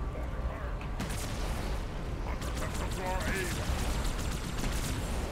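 Energy weapons fire in rapid bursts with blasts.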